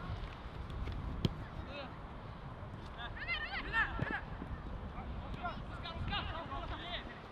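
Wind rumbles outdoors across an open field.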